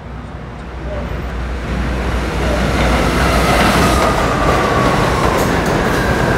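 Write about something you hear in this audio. A subway train rumbles loudly into the station.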